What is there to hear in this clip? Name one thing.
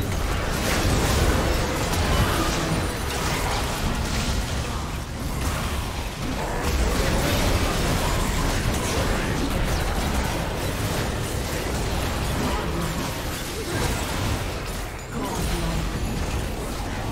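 Magic blasts and hits crackle and boom in a fast fight.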